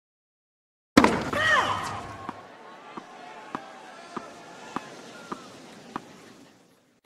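A tennis ball is struck back and forth with sharp pops.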